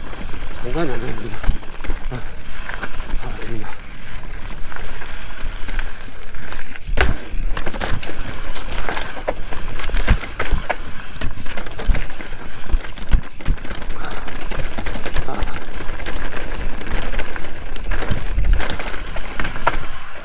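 Bicycle tyres rumble and crunch over rocky ground.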